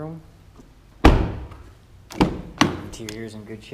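A car door thuds shut with a heavy bang.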